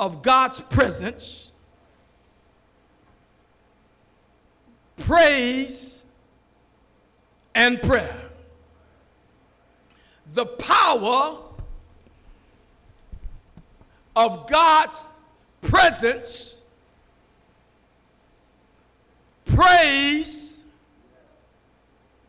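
A preacher's voice echoes around a large hall.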